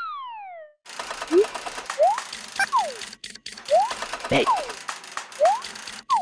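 Short cartoon whistles slide up and down over a soft backing tune.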